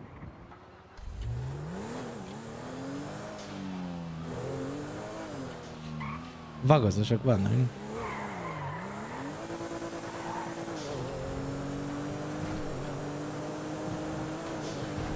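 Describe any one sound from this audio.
A car engine revs and rises in pitch as the car speeds up.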